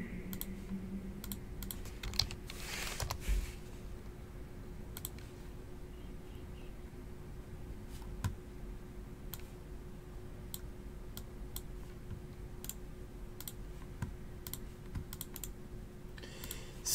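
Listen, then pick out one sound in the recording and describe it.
Fingers tap keys on a computer keyboard with soft clicks.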